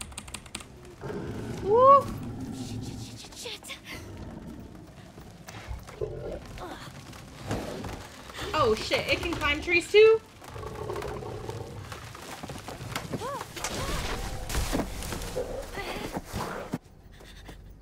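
A young woman talks and exclaims with animation into a close microphone.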